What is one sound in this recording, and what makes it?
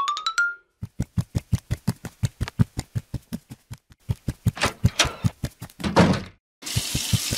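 Footsteps thud quickly and evenly.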